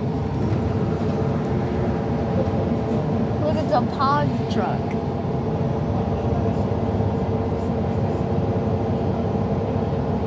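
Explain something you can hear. A bus engine hums steadily with a low rumble.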